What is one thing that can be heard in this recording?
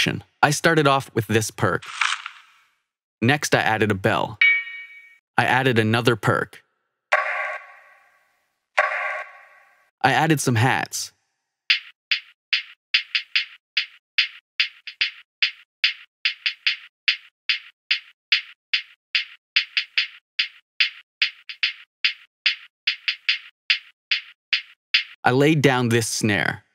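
An electronic drum beat plays in short bursts with pauses between.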